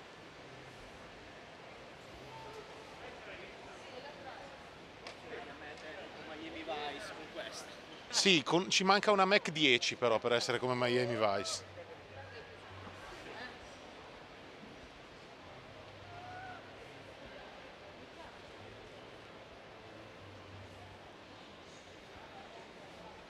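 A crowd murmurs faintly in a large echoing hall.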